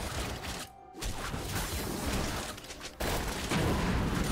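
Game spell effects and weapon hits clash in a fight.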